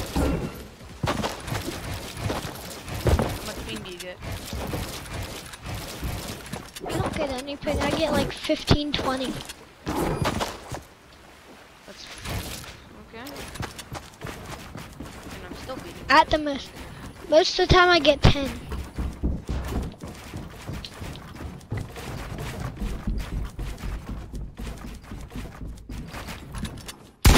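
Walls and ramps are built in a game with quick clacking thuds.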